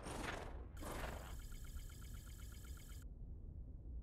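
A game's counter ticks rapidly and steadily as points add up, then stops.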